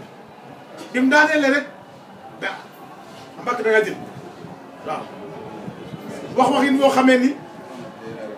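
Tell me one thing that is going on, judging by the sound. Several men speak loudly in bursts nearby.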